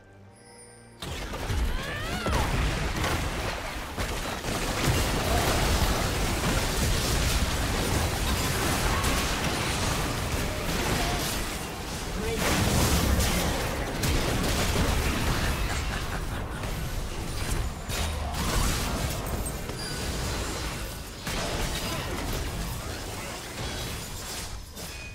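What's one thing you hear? Magic blasts and explosions crackle and boom in a busy battle.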